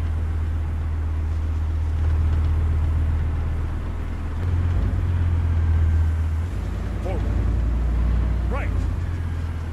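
A heavy tank engine rumbles steadily at close range.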